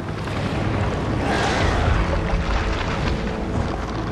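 A huge creature roars loudly.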